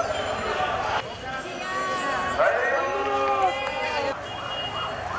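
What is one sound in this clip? A crowd of women chants slogans together.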